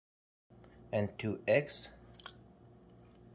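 Eggs plop into a metal bowl.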